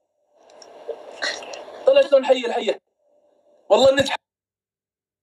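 A young woman talks with animation over a phone microphone.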